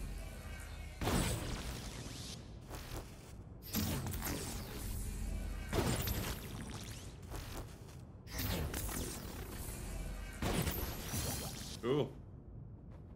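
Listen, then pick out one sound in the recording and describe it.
Energy blasts fire and burst with loud whooshing crackles.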